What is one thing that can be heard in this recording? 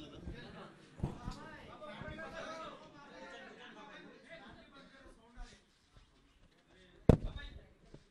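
A microphone thumps and bumps loudly as it is handled.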